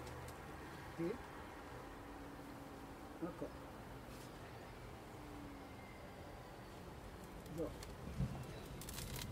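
A wooden hive box is set down with dull knocks.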